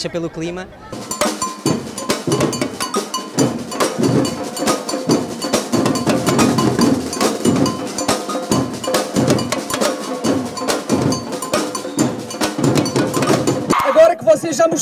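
A large crowd chants and cheers outdoors.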